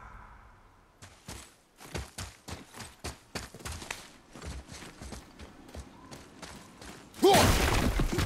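Footsteps run and crunch on stone and gravel.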